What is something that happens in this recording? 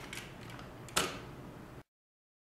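A plastic part on a nail gun clicks once.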